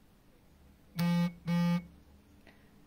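A phone gives two loud beeps.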